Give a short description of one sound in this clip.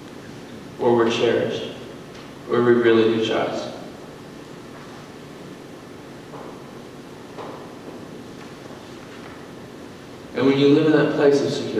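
A woman speaks calmly through a microphone in a large echoing hall, with pauses between phrases.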